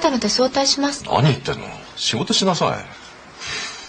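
A middle-aged man shouts back sternly.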